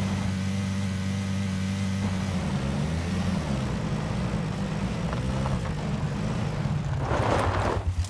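Tyres crunch over grass and gravel.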